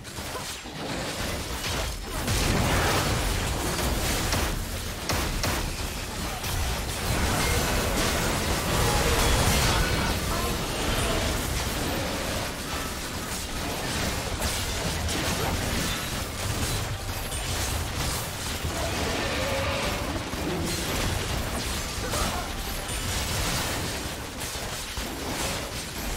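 Spell effects whoosh and crackle as fighters clash.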